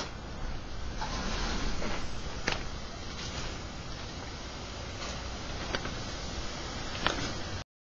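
A breeze rustles the leaves of nearby trees.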